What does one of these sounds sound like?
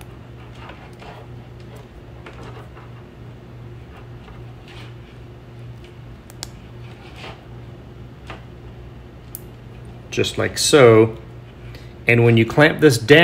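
Thin wire rustles softly as fingers twist it.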